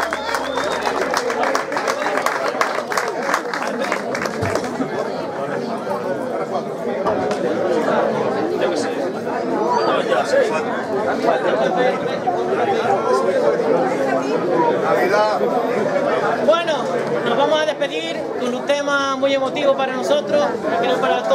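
A group of men sings together outdoors.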